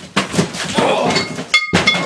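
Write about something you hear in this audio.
Plastic cups rattle as a hand grabs them.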